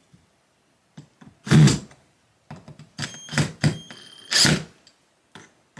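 Knocks and clatters sound as a shelf is fitted against a wooden wall.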